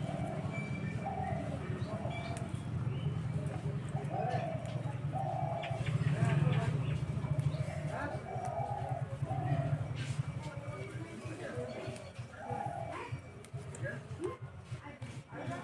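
Small leaves snap and rustle as they are plucked by hand.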